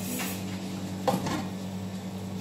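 A metal pot lid clanks as it is lifted.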